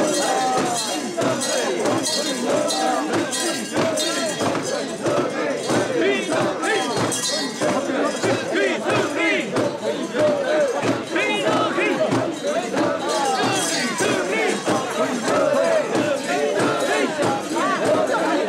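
Bells on a shrine jingle as it is carried.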